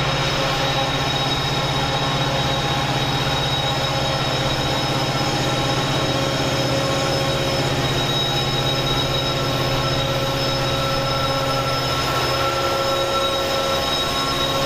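A diesel train engine rumbles steadily.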